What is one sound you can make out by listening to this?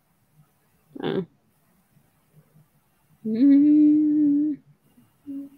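A young woman answers briefly and softly over an online call.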